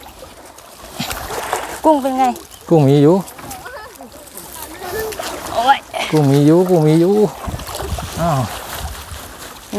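Water splashes as a man wades through a shallow pond.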